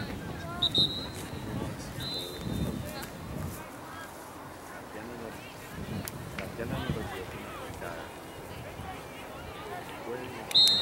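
Young women call out to each other across an open field.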